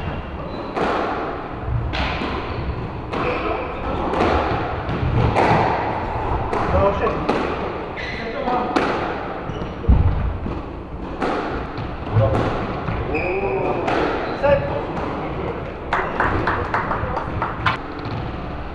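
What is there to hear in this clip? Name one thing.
A squash ball smacks hard off rackets and walls in an enclosed echoing court.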